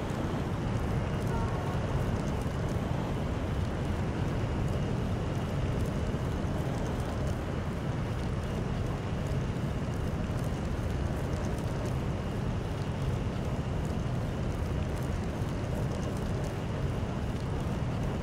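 Jet boots hiss steadily as a flying figure hovers.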